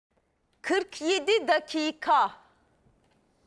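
A woman speaks clearly into a microphone in short bursts.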